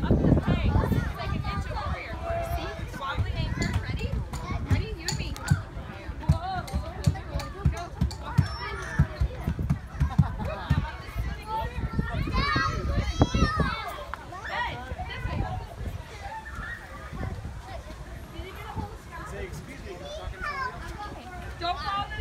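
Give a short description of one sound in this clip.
Children shout and chatter in the distance outdoors.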